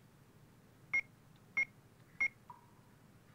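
A short electronic game beep sounds a few times.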